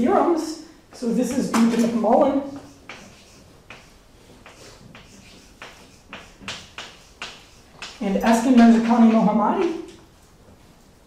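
A man speaks in a lecture, in a large echoing hall.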